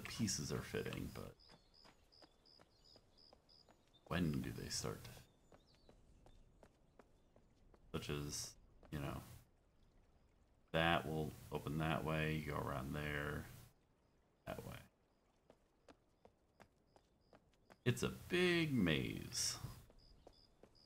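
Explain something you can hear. A man talks casually into a close microphone in short bursts.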